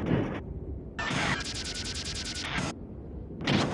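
A bright electronic chime rings with a shimmer.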